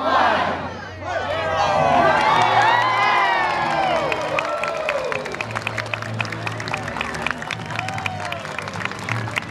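A crowd cheers and chatters outdoors.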